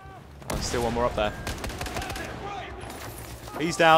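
A rifle fires sharp shots.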